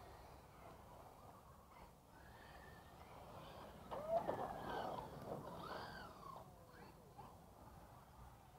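A small electric motor whines as a toy car races past.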